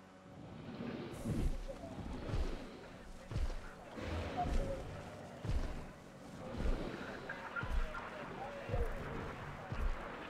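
Heavy footsteps thud on the ground at a steady pace.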